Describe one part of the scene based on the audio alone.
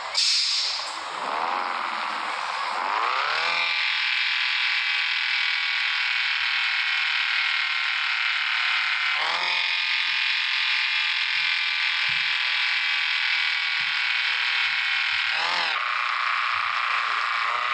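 A car engine revs up, drops briefly between gears and then hums steadily at speed.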